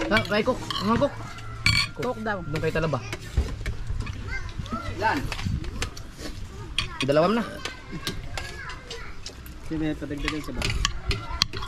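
Spoons clink on plates.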